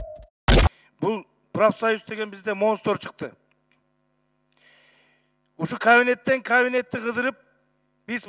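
A middle-aged man speaks emphatically into a microphone.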